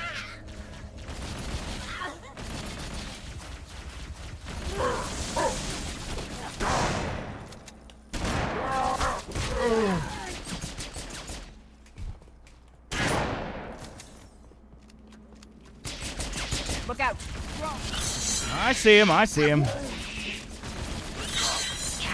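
Rapid gunfire rattles and bursts.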